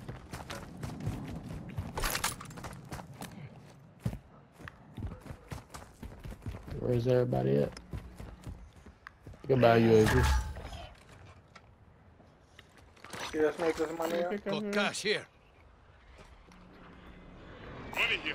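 Footsteps crunch over gravel and rubble.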